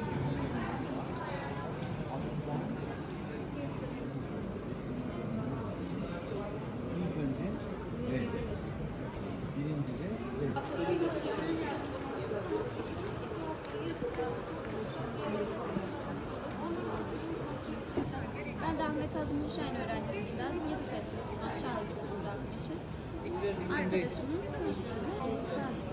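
A crowd of children chatters steadily in a large, echoing room.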